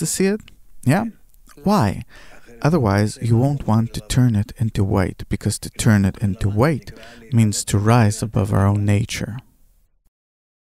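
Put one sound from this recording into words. An elderly man speaks calmly and steadily into a microphone close by.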